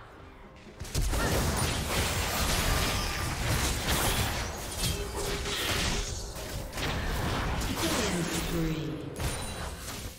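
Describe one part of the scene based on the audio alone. Game combat effects clash and burst with spell sounds and hits.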